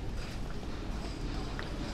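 Footsteps tap on a stone pavement close by.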